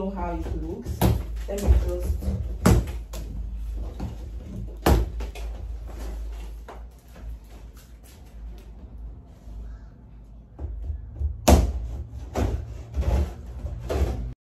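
Hands knock and thump against a plastic box.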